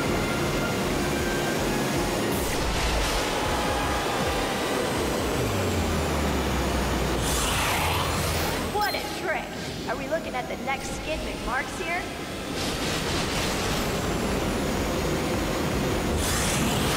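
A hoverboard engine roars and whooshes steadily at speed.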